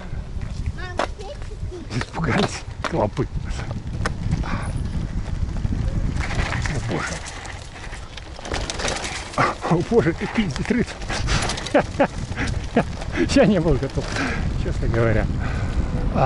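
Bicycle tyres rumble and crunch over a dirt path.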